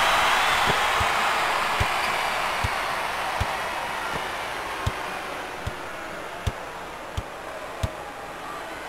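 A basketball bounces steadily on a wooden court.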